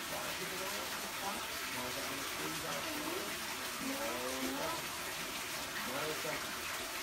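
Water pours and splashes steadily into a tank.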